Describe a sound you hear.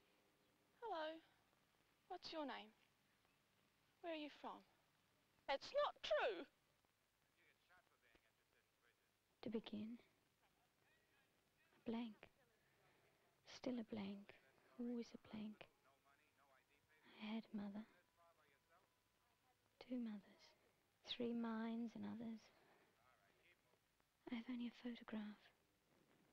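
A young woman speaks in short, halting bursts with long pauses between them.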